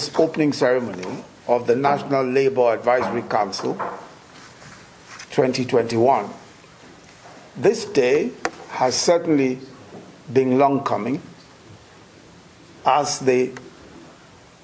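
A middle-aged man speaks steadily and formally into a microphone, with pauses between phrases.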